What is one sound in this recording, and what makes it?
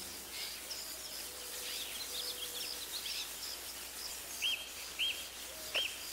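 Steam hisses steadily from a broken pipe.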